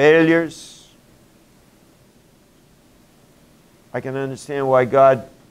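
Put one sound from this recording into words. An elderly man speaks calmly in a slightly echoing room.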